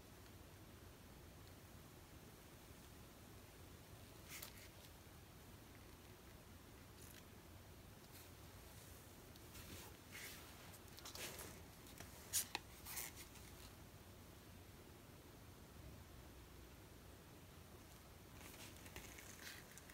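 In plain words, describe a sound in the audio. A plastic scraper scrapes wet paint across a smooth board.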